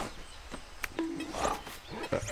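A cartoon bear yelps in surprise.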